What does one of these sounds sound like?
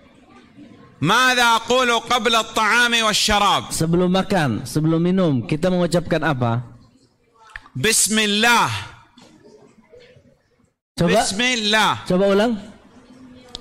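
A man recites in a melodic, chanting voice through a microphone, with pauses.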